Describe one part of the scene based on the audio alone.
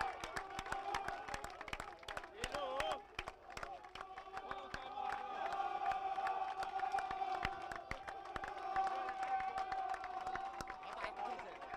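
A crowd cheers and shouts outdoors.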